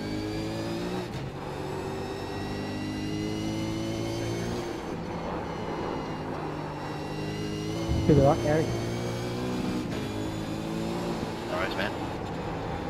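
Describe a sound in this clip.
A racing car engine roars steadily, rising and falling in pitch as gears change.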